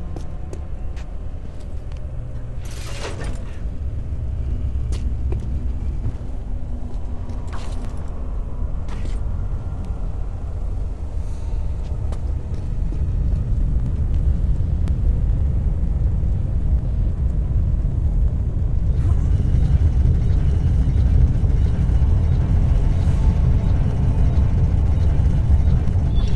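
A deep, steady rumble drones throughout.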